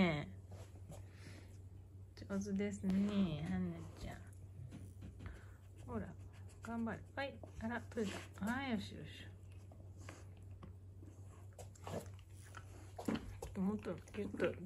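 A dog sniffs and snuffles at a soft toy.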